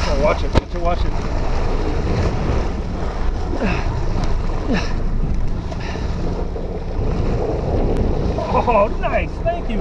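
Water splashes as a large fish thrashes at the surface.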